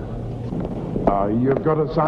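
Heeled boots tap on a hard floor.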